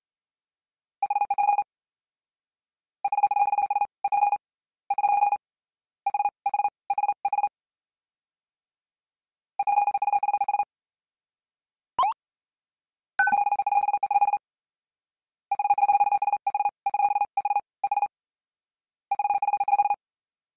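Short electronic beeps chatter rapidly in bursts.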